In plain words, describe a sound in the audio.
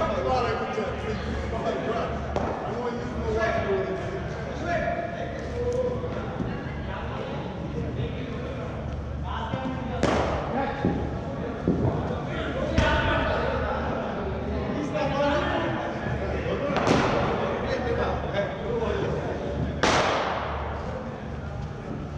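Men talk at a distance in a large echoing hall.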